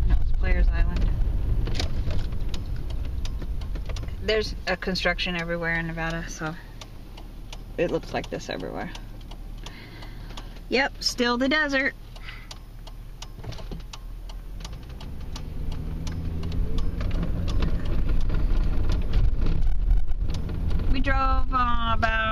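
A car engine rumbles low and steady, heard from inside the car.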